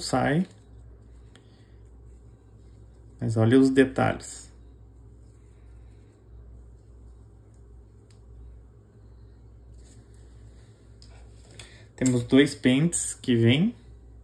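Small plastic parts click and tap together in hands.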